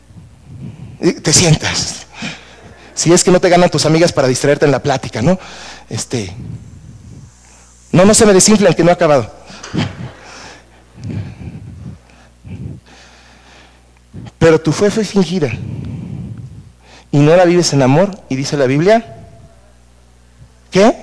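A middle-aged man speaks with animation in an echoing room.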